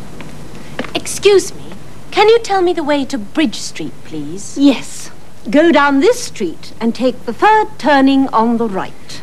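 A young woman talks in reply.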